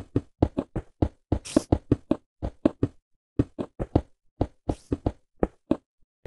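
Stone blocks thud as they are placed in a video game.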